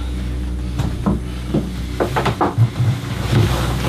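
A plate clinks down onto a wooden table.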